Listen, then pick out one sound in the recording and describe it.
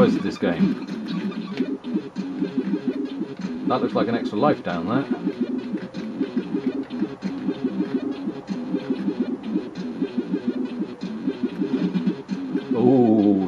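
Game sound effects blip and zap.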